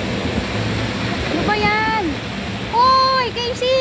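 A boy splashes through water.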